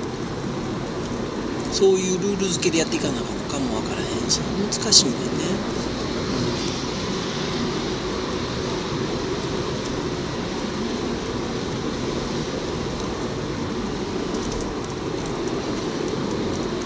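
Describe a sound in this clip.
A car engine hums and tyres rumble steadily on the road inside a tunnel.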